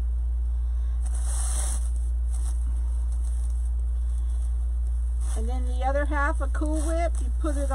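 Stiff plastic mesh rustles and crinkles as hands fluff it.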